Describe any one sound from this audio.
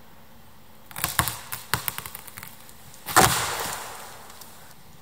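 A log thuds and scrapes over dry leaves.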